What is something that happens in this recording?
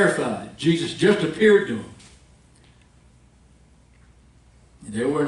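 A middle-aged man speaks steadily into a microphone, in an echoing hall, pausing between phrases.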